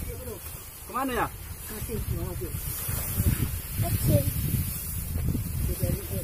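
Dry grass rustles as an armful is carried and dropped.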